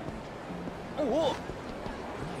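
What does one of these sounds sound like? A punch lands with a thud during a brawl.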